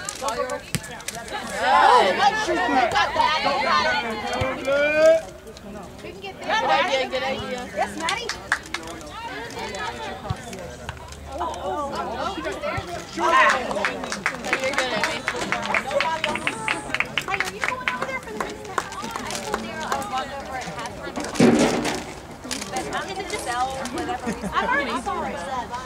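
Several women and men talk and call out nearby, outdoors.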